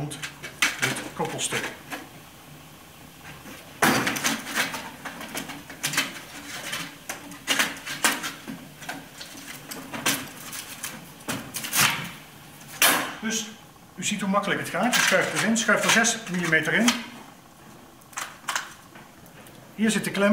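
Metal pipe parts clank and scrape together.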